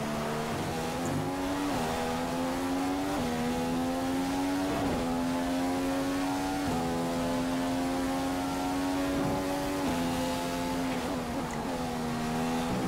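A racing car engine screams at high revs, rising through the gears with sharp shifts.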